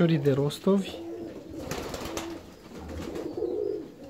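A pigeon flaps its wings in flight.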